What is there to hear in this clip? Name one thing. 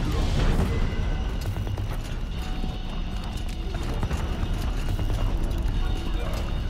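Footsteps scrape and crunch on rocky ground.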